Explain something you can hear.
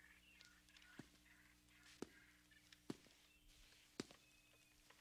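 Slow footsteps crunch on rubble.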